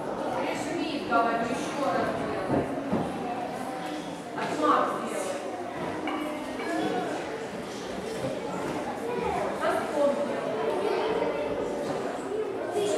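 Children talk and call out in a large echoing hall.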